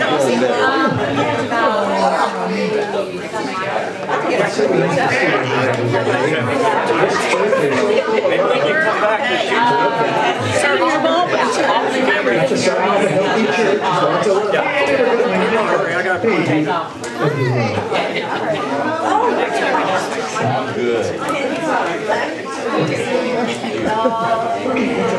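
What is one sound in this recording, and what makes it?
Many men and women chat at once, close by, in a roomful of people.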